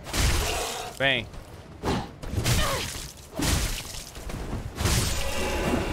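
Blades clash and swish in a fight.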